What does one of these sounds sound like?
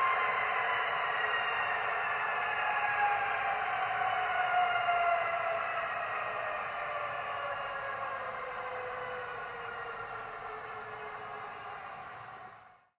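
A model diesel locomotive's engine hums steadily, its pitch slowly falling before it cuts off.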